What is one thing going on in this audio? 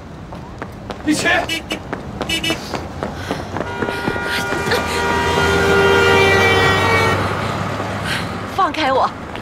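A young man speaks tensely.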